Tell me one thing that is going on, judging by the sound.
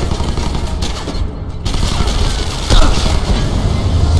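Gunshots crack and echo in a large hall.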